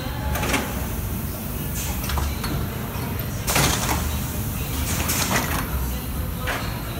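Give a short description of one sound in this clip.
Industrial machinery runs with a steady low rumble.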